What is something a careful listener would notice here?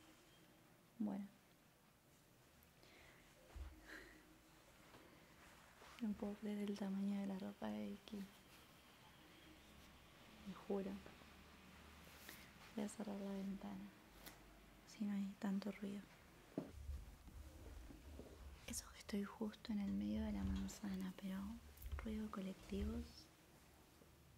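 A young woman speaks softly and close into a microphone.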